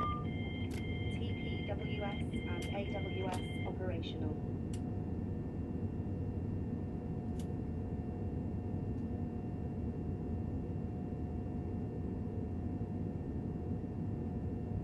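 A train's motors hum steadily.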